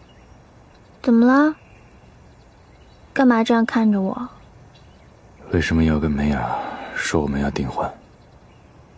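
A young woman speaks quietly and tensely, close by.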